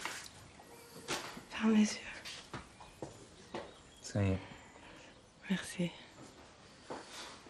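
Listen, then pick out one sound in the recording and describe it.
A man speaks softly up close.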